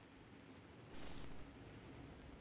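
Static crackles in a short burst.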